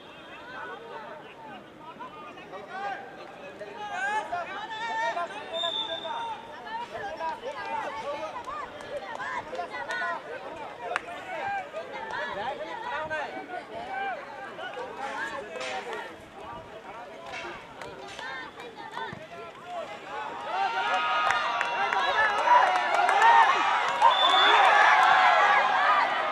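A crowd of spectators chatters and calls out outdoors, growing louder and more excited toward the end.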